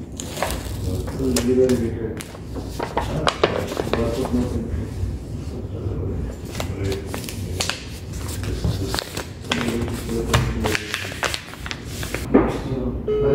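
Paper crinkles and rustles in a man's hands.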